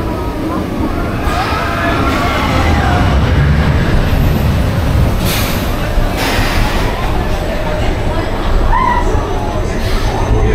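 A ride car rumbles and clatters along a track.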